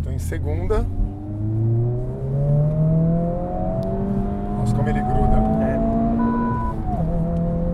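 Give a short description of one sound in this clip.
A car engine revs up higher and higher as it speeds up.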